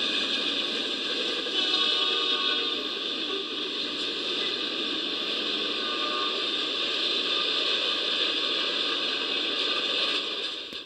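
A freight train rumbles across a steel trestle bridge, heard through a small speaker.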